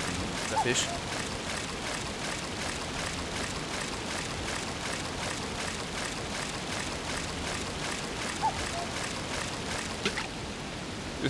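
Water laps and splashes softly.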